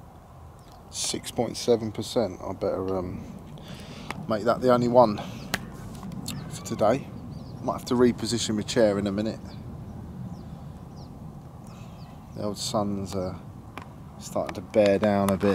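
A man talks calmly and close by, outdoors.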